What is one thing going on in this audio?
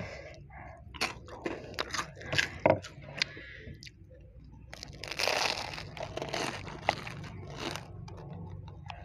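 Crispy snacks crunch loudly close to a microphone as a young woman bites and chews.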